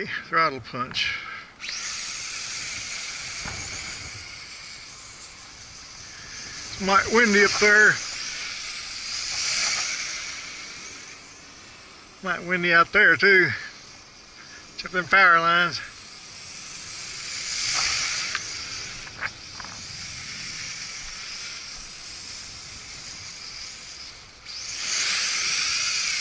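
A small drone buzzes with a high whine as it flies overhead, rising and falling.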